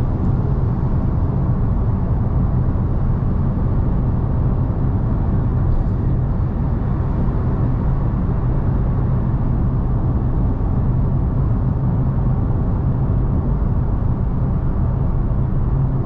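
A car's engine hums steadily inside the car.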